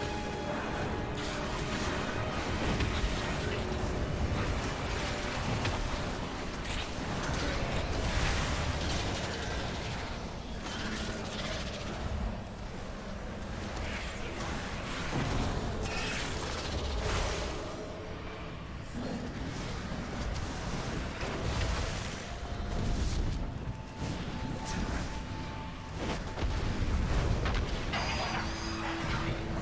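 Magic spells crackle and whoosh in quick bursts.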